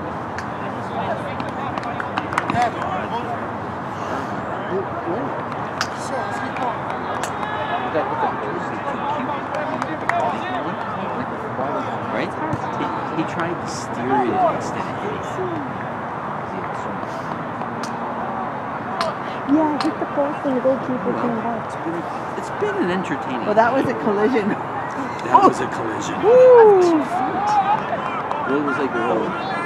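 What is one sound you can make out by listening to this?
Young men shout and call out across an open outdoor field.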